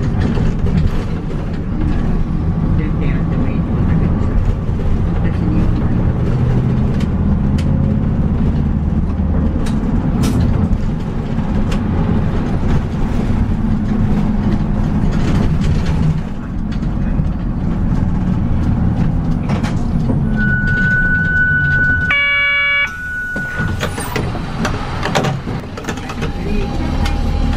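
A diesel city bus engine rumbles from inside as the bus drives through traffic.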